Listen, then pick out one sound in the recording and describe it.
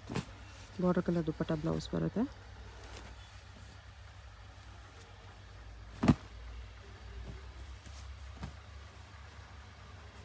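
Silk cloth rustles softly as it is unfolded and laid down.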